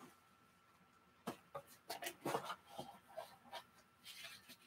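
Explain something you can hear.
A cardboard box lid scrapes and taps as hands open it.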